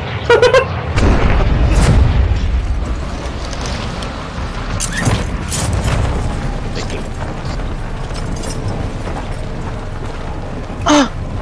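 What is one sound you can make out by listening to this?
Wind rushes past in a loud low roar.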